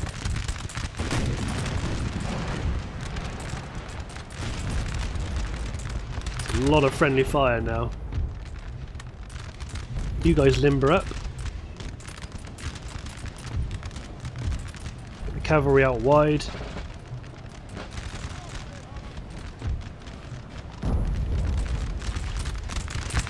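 Musket fire crackles steadily in a distant battle.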